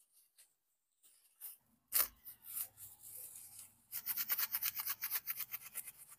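Hands rub and pull apart dry coconut fibre with a rapid rustling.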